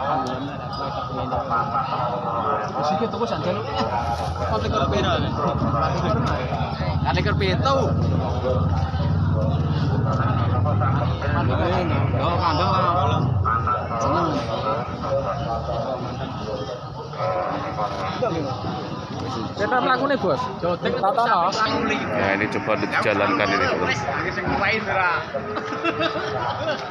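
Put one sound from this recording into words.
Men talk and call out nearby in a busy outdoor crowd.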